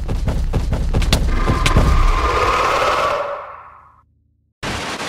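A monster lets out a loud, rising roar.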